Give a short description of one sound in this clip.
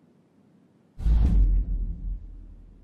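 A heavy door thuds open.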